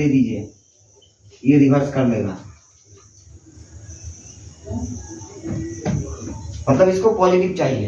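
A young man explains calmly, speaking close by.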